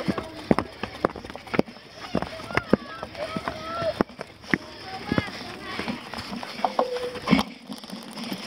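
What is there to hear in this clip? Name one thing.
A bicycle rattles and clanks over rough ground.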